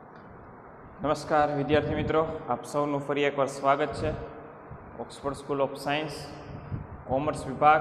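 A young man speaks calmly from close by.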